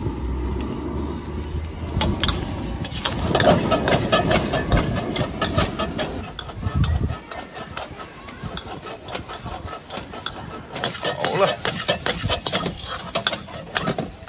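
Oil sizzles loudly in a hot wok.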